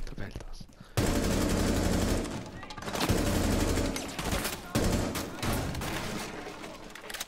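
Rapid gunfire from a submachine gun echoes loudly off walls.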